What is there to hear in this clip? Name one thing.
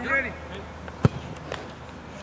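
A football is kicked with a sharp thud nearby.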